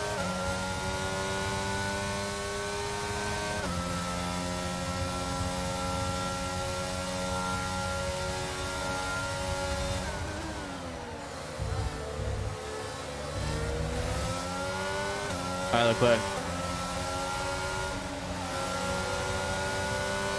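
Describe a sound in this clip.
A racing car engine whines at high revs, dropping as it brakes and climbing again as it speeds up.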